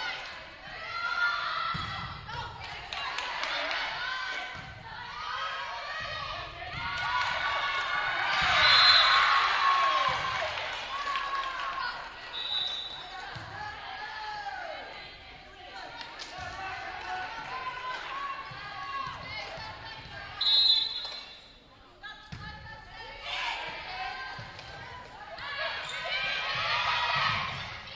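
Young women shout and call to each other in a large echoing gym.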